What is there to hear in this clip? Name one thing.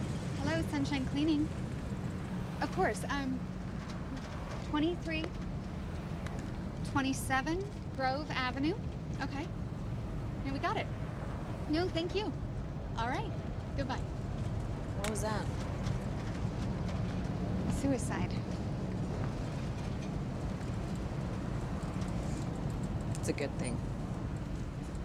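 A young woman talks on a phone.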